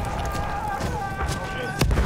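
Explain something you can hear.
Small fires crackle nearby.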